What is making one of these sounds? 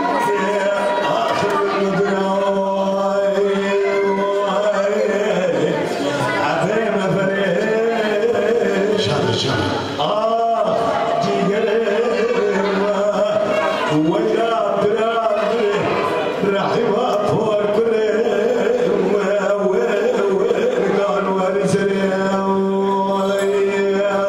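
An elderly man sings loudly into a microphone with a long, wavering voice.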